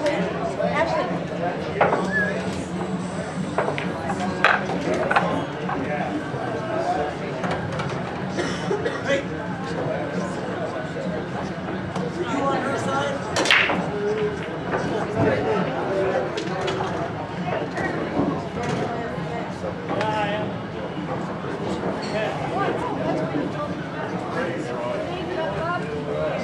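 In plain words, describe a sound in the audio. Billiard balls click and knock together as they are racked.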